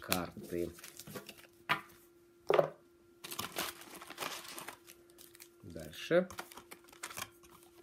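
Trading cards rustle and flick as they are shuffled by hand.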